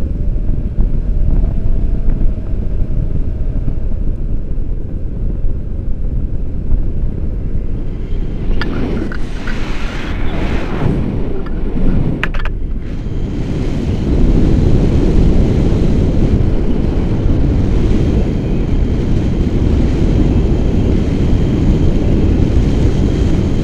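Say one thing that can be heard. Wind roars loudly against a microphone outdoors.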